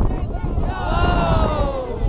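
A man splashes into water.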